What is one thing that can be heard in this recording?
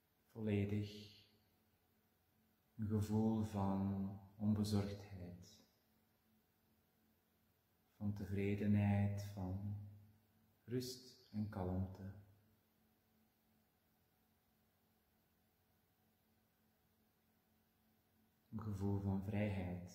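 A man speaks calmly and slowly, close to a microphone, with long pauses.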